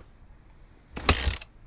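A motorcycle engine starts up close by.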